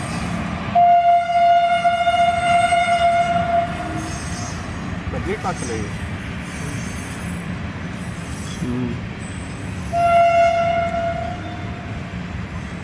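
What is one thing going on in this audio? An electric locomotive sounds its horn loudly, twice.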